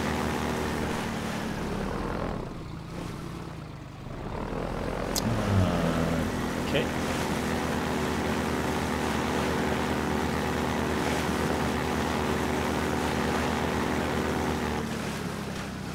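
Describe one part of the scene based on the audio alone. A vehicle engine hums and drones steadily.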